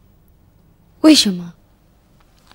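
A young woman briefly asks a question.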